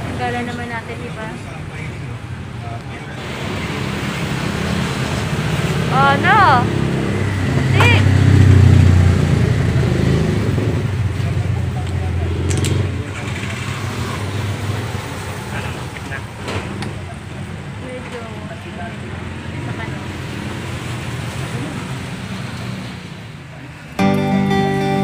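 A young woman talks calmly close to the microphone.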